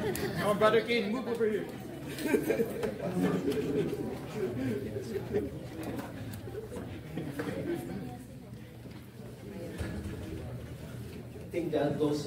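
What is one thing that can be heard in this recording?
A middle-aged man speaks with animation into a microphone in an echoing hall.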